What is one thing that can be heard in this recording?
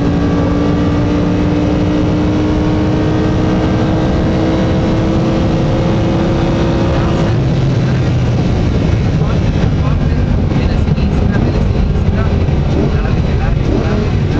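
Tyres and road noise rumble low throughout.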